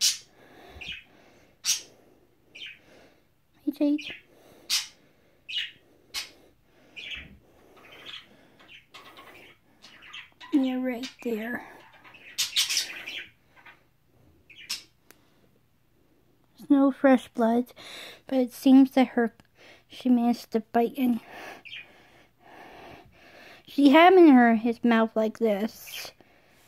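A budgie chirps and squeaks sharply close by.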